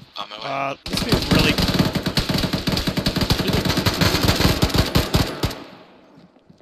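Rifles fire in rapid bursts close by.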